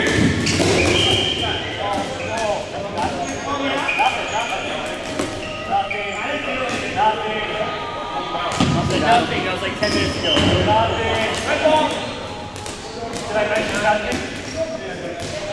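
Rubber balls thud on a wooden gym floor.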